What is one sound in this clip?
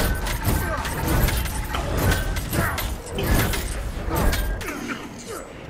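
Energy weapons fire in rapid, crackling bursts.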